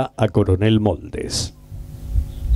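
A man speaks through a loudspeaker outdoors.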